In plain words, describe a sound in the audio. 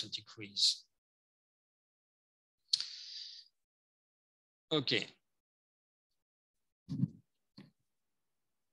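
A man speaks calmly in short phrases, heard over an online call.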